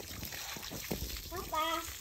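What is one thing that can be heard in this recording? Water splashes from a hose onto concrete.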